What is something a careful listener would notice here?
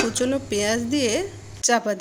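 A metal lid clanks down onto a pan.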